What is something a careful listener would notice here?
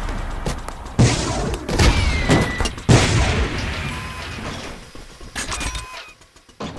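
A laser gun fires in sharp bursts.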